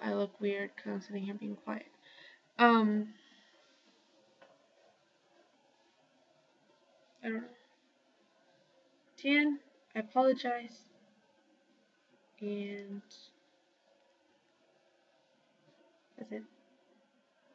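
A young woman speaks close to a webcam microphone, in short bursts with pauses.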